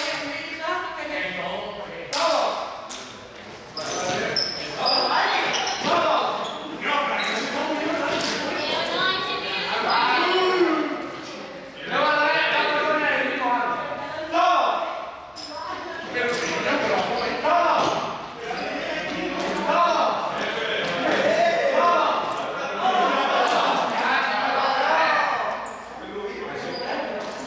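Sneakers squeak and shuffle on a hard floor.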